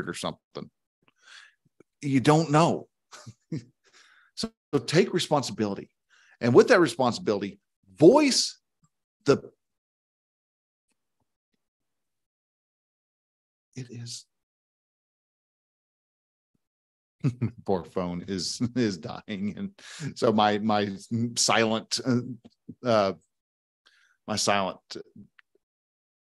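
A middle-aged man speaks with animation close to a microphone, with pauses.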